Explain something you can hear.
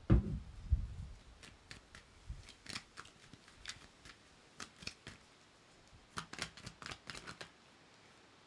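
Small objects tap and click close to a microphone.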